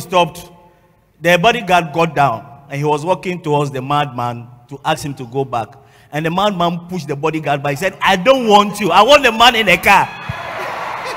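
A man preaches loudly and with animation into a microphone in a large echoing hall.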